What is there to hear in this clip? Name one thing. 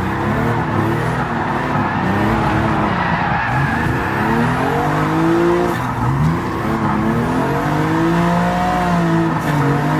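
A car engine revs hard, rising in pitch and dropping with each gear change.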